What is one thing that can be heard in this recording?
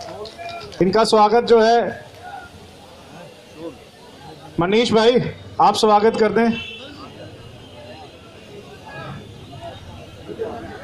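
A crowd murmurs quietly in the background outdoors.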